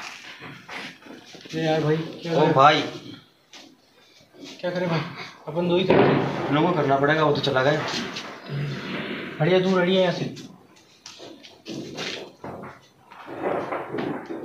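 A second young man answers in a calm voice.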